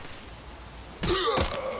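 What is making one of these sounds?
A creature snarls loudly up close.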